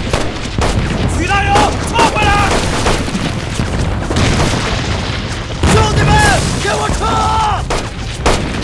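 A second man yells commands with alarm.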